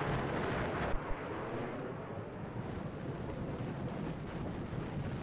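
Wind rushes past during a free fall.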